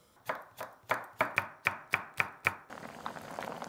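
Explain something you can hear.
A knife chops on a wooden board in quick, sharp taps.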